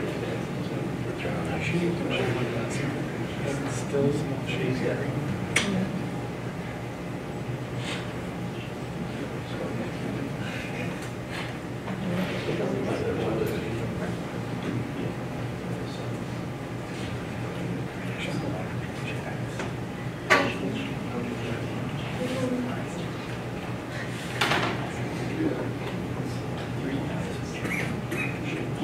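A projector fan hums steadily.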